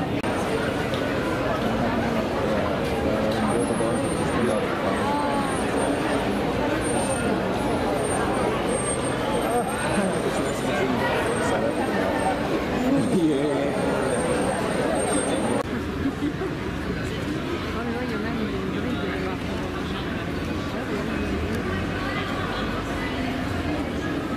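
A crowd of men and women chatters close by outdoors.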